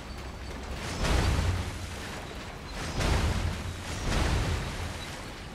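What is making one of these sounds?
Flames burst up with a loud roaring whoosh, again and again.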